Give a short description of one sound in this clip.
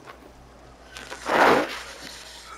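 Leafy plants rustle loudly as someone pushes through them.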